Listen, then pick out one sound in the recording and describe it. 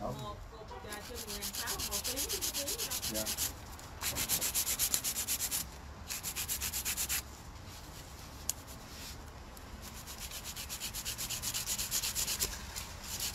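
A nail file rasps back and forth against a fingernail in quick strokes.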